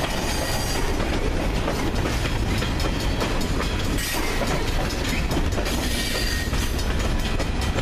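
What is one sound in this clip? Freight cars rumble past close by on the rails.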